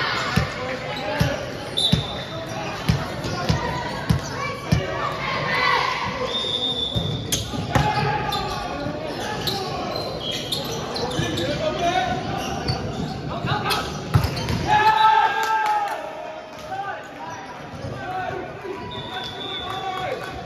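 Young men and women call out and talk across an echoing hall.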